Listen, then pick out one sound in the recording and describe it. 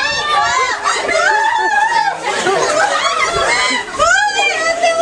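Children shout and squeal excitedly close by.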